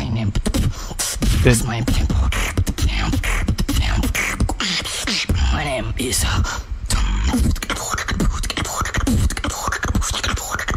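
A young man beatboxes into a microphone, making fast, punchy drum-like clicks and vocal sounds.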